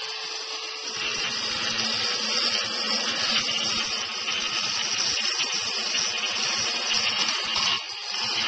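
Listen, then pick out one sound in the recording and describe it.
A saw blade grinds harshly through stone.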